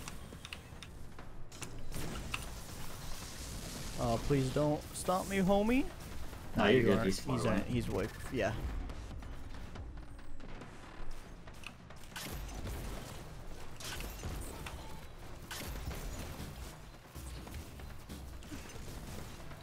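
Gunfire crackles in bursts.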